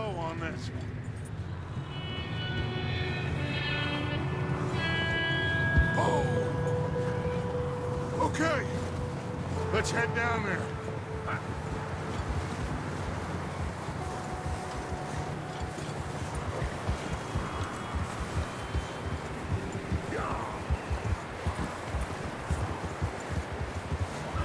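Wind blows through a snowstorm.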